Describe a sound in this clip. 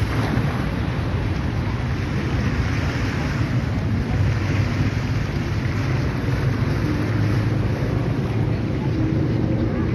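Waves slosh and splash against a sea wall.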